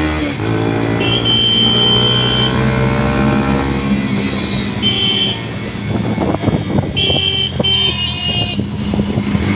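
A horn beeps several times.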